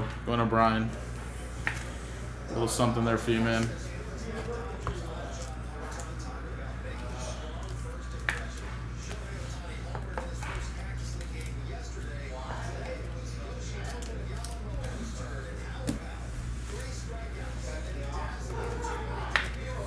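Trading cards in plastic sleeves rustle and click as hands handle them.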